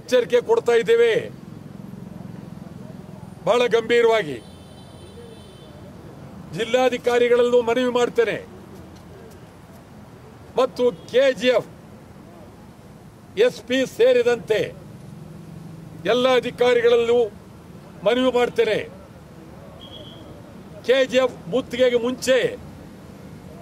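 A man speaks up close in short, forceful bursts with pauses.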